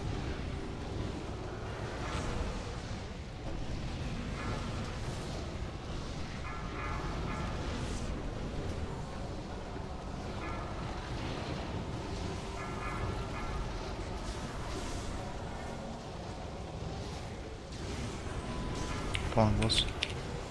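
Game battle effects whoosh, clash and chime steadily.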